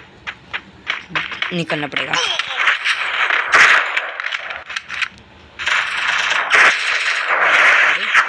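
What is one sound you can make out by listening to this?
Gunshots fire in quick bursts in a video game.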